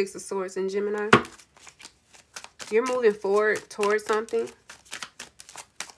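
Cards are shuffled by hand with soft, quick riffling clicks.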